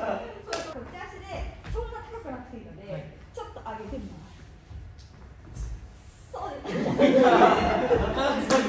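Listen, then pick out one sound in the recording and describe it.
Young men talk with each other.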